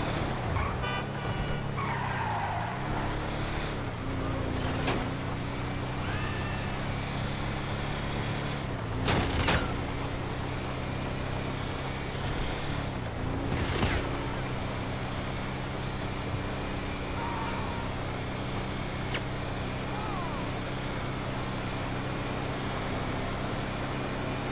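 A truck engine hums steadily as it drives along a highway.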